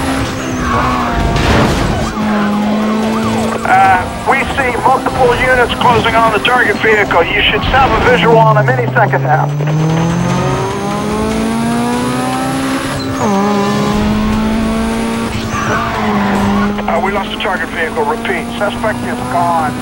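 A car engine roars and revs as it races.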